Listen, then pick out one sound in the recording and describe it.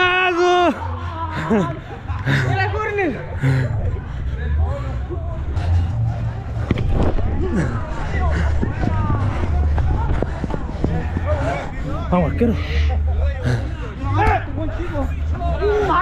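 Young men shout and call out nearby, outdoors.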